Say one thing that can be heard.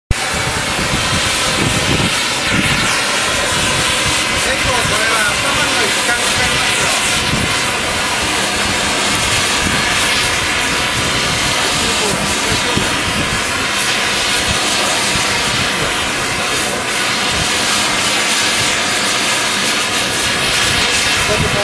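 A gas torch roars steadily with a loud hissing flame.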